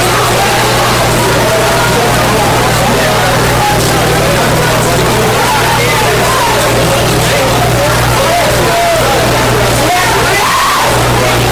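A singer sings through loud speakers.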